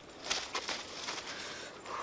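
Leaves rustle as they are gathered by hand.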